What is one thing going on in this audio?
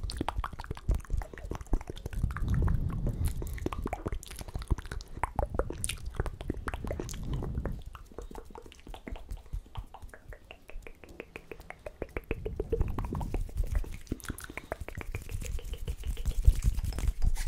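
Fingers tap and flutter close to a microphone, making quick crackles.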